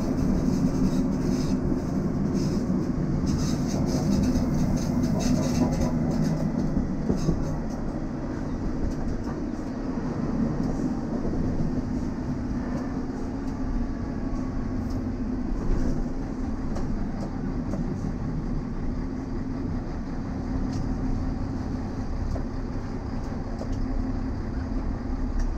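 Steel wheels click and clatter on rails.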